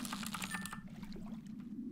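A fishing reel clicks rapidly.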